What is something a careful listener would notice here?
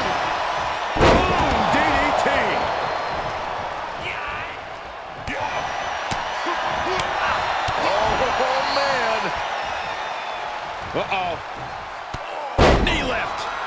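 Heavy bodies slam down onto a ring mat with loud thuds.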